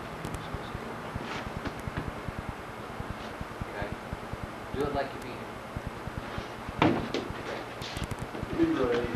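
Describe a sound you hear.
A man speaks calmly, explaining as he demonstrates.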